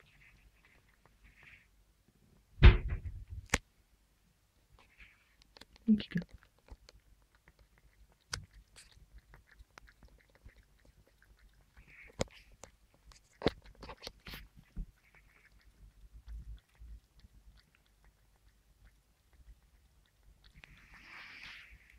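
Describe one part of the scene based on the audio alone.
A cat laps water from a bowl up close.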